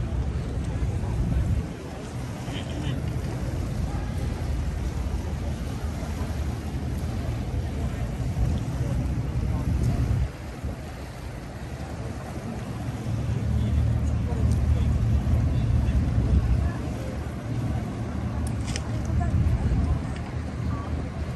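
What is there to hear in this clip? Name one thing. Wind blusters loudly outdoors.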